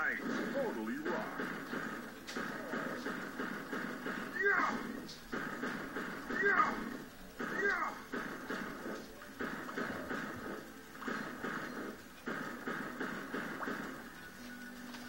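Cheerful video game music plays from a television speaker.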